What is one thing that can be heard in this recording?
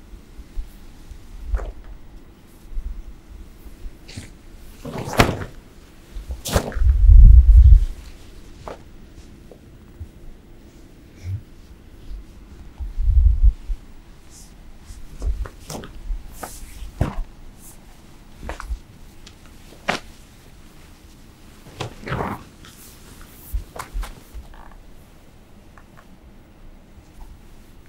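Footsteps thud and slide on a wooden stage.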